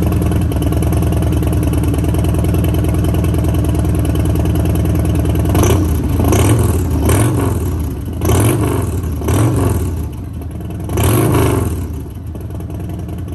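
A motorcycle engine idles with a deep, loping rumble close by.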